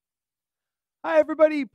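A man speaks with animation into a headset microphone.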